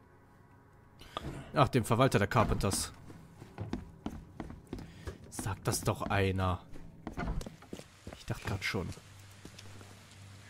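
Footsteps tread across a floor.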